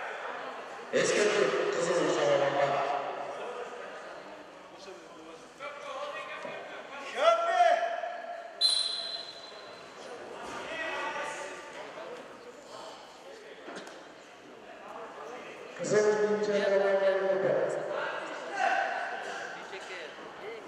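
A man shouts loud commands in a large echoing hall.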